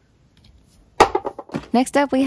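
Plastic packaging crinkles under a hand.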